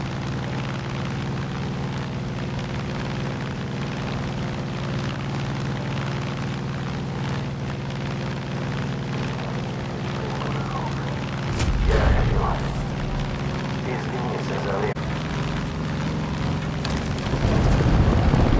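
The piston engine of a single-engine propeller plane drones, heard from inside the cockpit.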